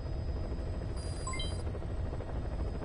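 A short electronic chime plays a quick run of beeps.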